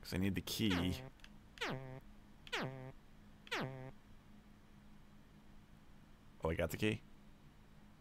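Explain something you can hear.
Short electronic tones sweep downward in pitch, one after another.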